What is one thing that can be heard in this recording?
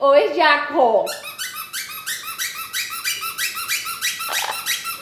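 A parrot gives a quick run of repeated high chirps.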